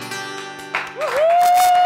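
An acoustic guitar strums a chord that rings out.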